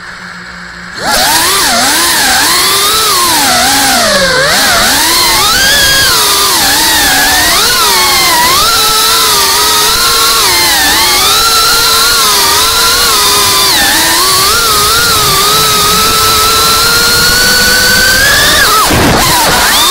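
A small drone's motors whine loudly, rising and falling in pitch as it swoops.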